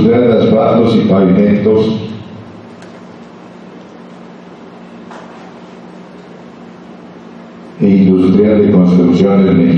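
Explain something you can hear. A woman speaks calmly to a group, heard through a loudspeaker.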